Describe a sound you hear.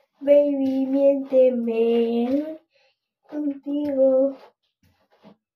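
A young girl sings in a high voice close by.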